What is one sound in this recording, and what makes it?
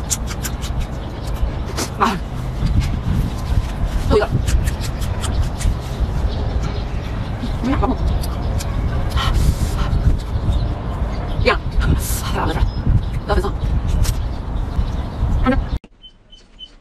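A young woman crunches loudly on a crisp raw pepper.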